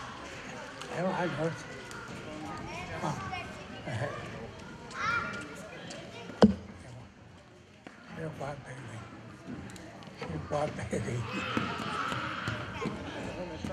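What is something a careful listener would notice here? Children laugh loudly nearby.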